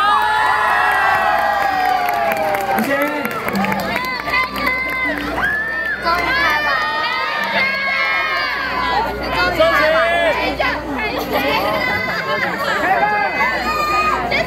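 A large crowd of young people cheers and shouts excitedly.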